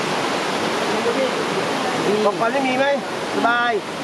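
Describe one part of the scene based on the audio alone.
Men talk nearby in relaxed, lively voices.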